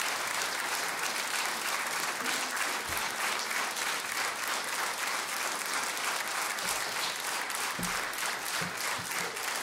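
A large audience applauds steadily.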